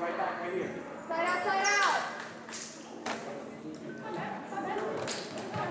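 Young women shout and call out to each other in an echoing gym.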